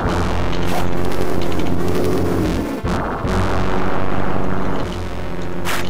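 Flames roar from a dragon's fiery breath.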